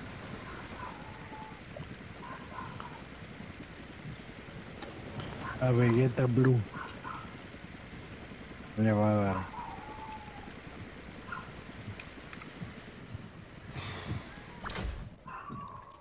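Wind rushes steadily past a falling figure.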